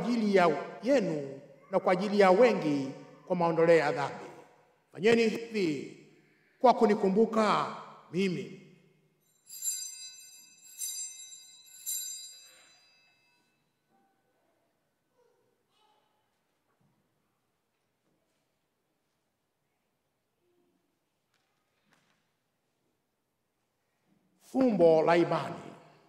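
A man chants into a microphone in a large echoing hall.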